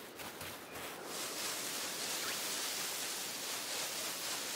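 Tall grass rustles as someone pushes through it.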